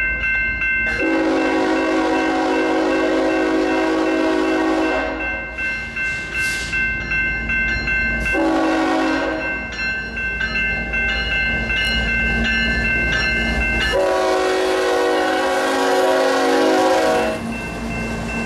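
A train horn blares in long, loud blasts.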